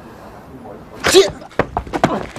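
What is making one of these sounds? A young man shouts sharply.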